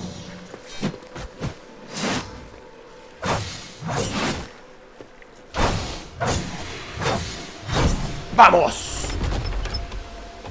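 Swords clash and slash in quick bursts.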